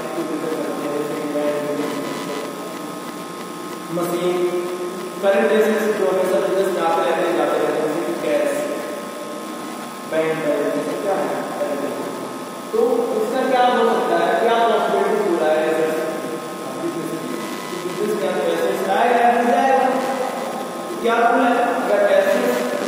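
A young man speaks with animation in a slightly echoing room.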